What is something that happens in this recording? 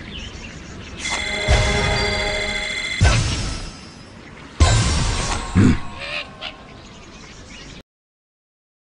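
A cheerful game jingle plays with rising chimes.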